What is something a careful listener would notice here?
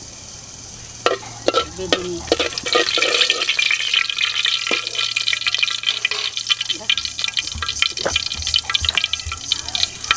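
Food sizzles and crackles in a hot pot.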